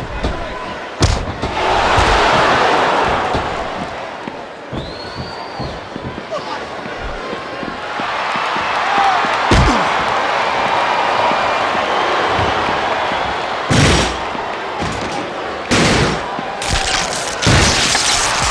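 Heavy blows and body slams thud sharply.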